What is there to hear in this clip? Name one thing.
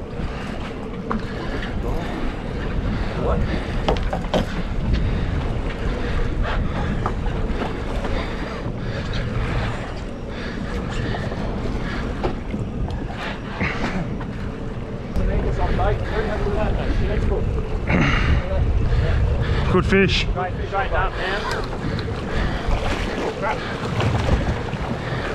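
Wind buffets outdoors over open water.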